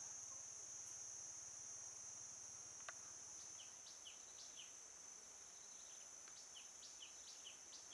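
Footsteps tread softly on grass.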